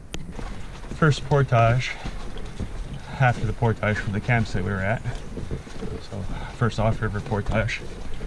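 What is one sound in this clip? Leafy branches brush and scrape against a canoe.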